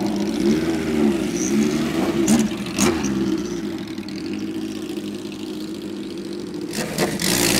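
Motorcycles ride past on the road.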